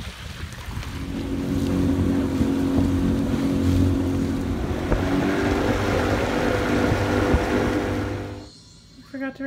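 A boat engine drones loudly.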